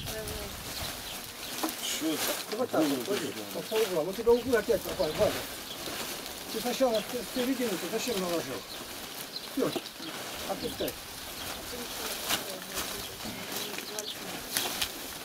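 Dry stalks rustle and crackle as they are handled.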